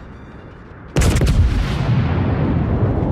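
Heavy naval guns fire a loud booming salvo that rumbles on.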